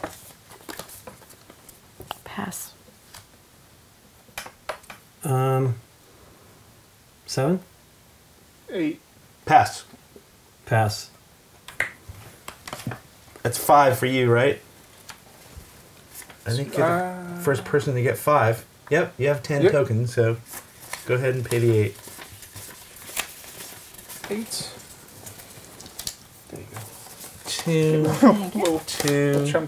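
Playing cards and game pieces click and rustle on a table.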